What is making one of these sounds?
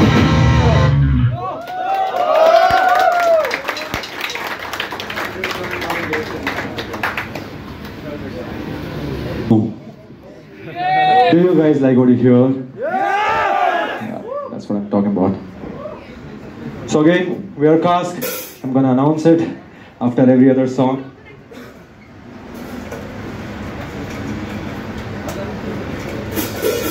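A live rock band plays loudly in an echoing room.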